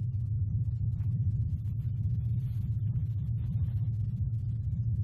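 Bedding rustles as a person sits up.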